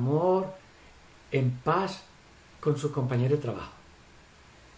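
An elderly man speaks calmly through an online call.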